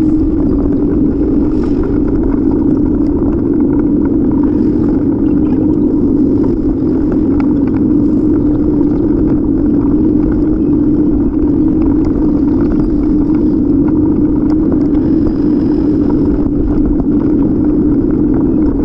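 Wind rushes steadily and loudly past a moving bicycle rider.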